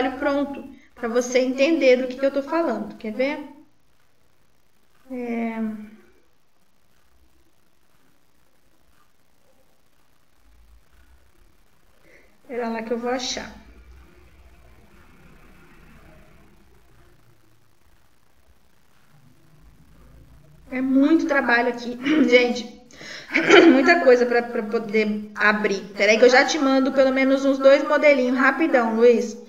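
A woman speaks calmly into a microphone, with pauses.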